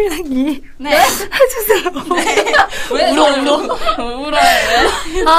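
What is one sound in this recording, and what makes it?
Another young woman asks something playfully.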